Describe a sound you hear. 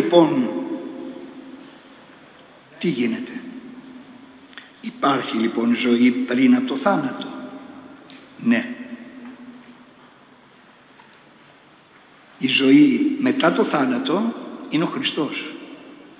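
An elderly man speaks calmly into a microphone in a reverberant hall, pausing between phrases.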